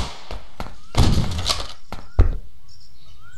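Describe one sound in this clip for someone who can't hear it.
A shotgun fires two loud shots.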